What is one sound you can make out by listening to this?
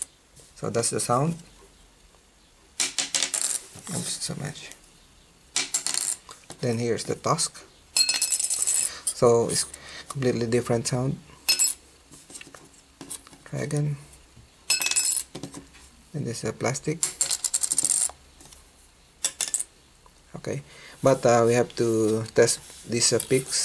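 Small plastic picks tap and click lightly on a hard surface.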